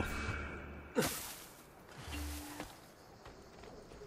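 Something lands with a rustling thud in a pile of straw.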